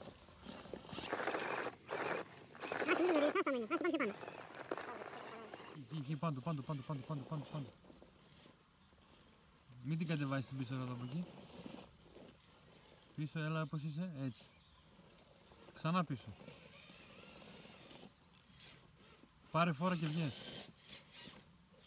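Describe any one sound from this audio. Plastic tyres scrape and crunch on rock.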